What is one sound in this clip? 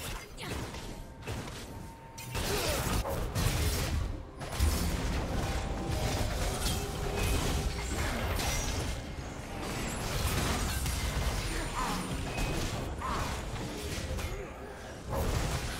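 Video game spell blasts and hits crackle and thump during a fight.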